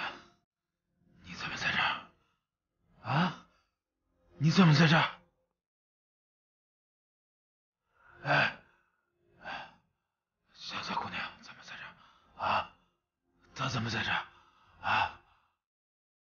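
A man speaks urgently, close by.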